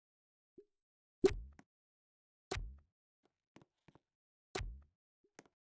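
A tapping click sounds as game buttons are pressed.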